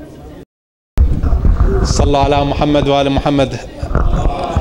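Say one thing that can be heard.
A middle-aged man speaks loudly into a microphone, heard through a loudspeaker.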